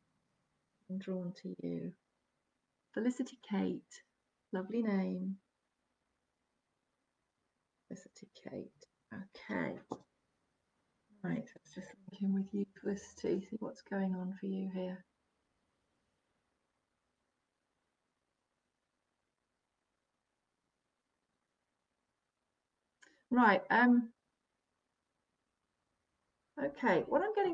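A middle-aged woman speaks calmly and close, in short phrases with long pauses.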